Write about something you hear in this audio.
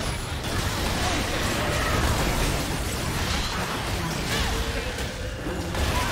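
Game spells and attacks crackle, whoosh and burst in a fast fight.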